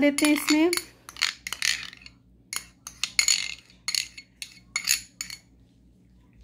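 A metal spoon scrapes and taps against a ceramic bowl.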